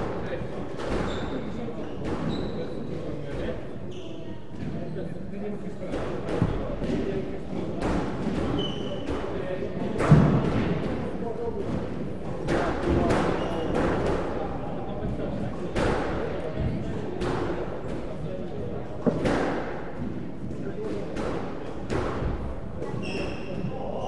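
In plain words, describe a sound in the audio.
A squash ball smacks against the walls with sharp, echoing thuds in a large hall.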